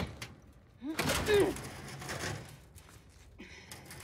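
A heavy metal door rattles as it is pushed.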